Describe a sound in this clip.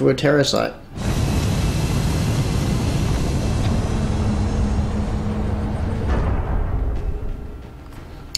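An aircraft engine roars loudly as it takes off, then fades away.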